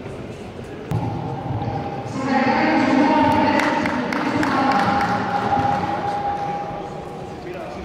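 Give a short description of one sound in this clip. A crowd claps and applauds.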